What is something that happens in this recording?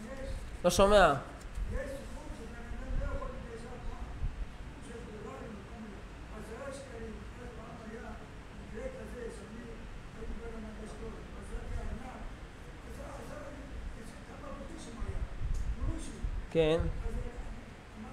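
A young man speaks calmly into a microphone in an echoing room.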